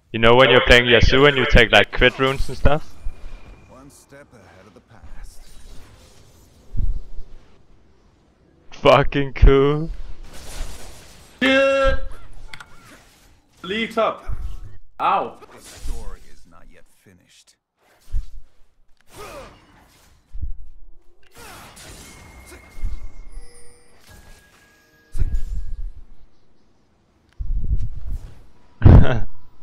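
Spells whoosh and zap in short bursts.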